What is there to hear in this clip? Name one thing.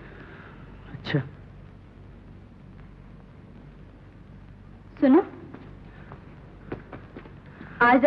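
A woman speaks briefly, close by.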